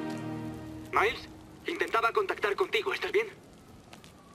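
A man's voice answers over a phone.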